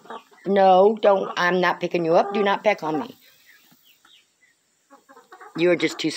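A hen clucks softly close by.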